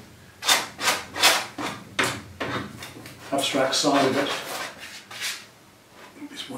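A palette knife scrapes across canvas in quick strokes.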